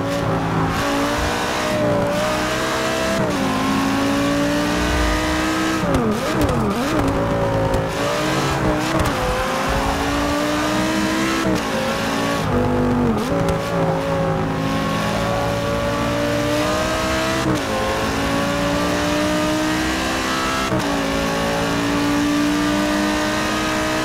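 A racing car engine roars loudly, rising in pitch and dropping sharply with each gear change.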